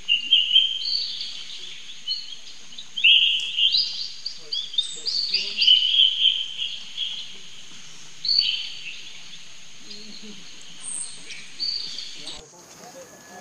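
A baby monkey squeals and chirps in high, shrill calls.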